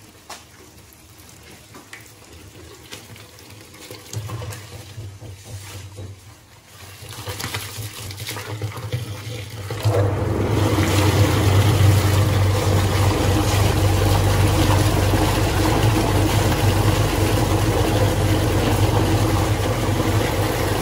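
Water splashes from a hose into a metal vat.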